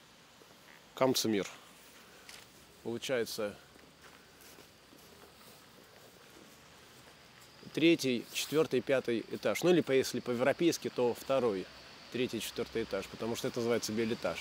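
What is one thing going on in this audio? A man talks close by, animatedly.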